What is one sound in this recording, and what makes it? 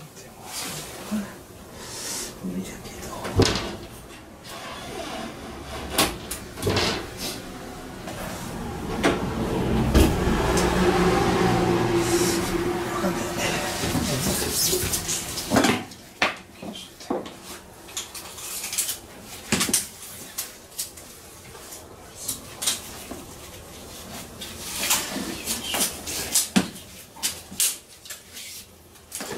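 Tools and parts clatter and knock close by as a man works by hand.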